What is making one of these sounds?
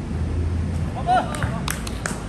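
Basketball shoes squeak on a hard court.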